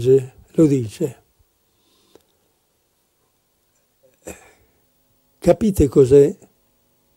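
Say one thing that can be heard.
An elderly man speaks calmly into a microphone, lecturing in pauses.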